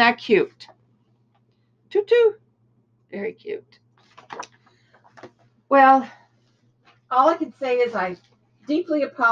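An elderly woman talks calmly, close by.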